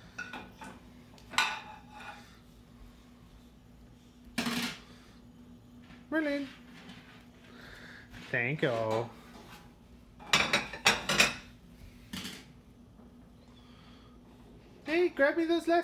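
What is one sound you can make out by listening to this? Plastic plates clatter against a dish rack.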